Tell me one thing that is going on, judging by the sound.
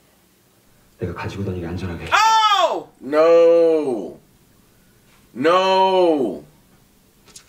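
A man speaks with animation close by, his voice rising and falling.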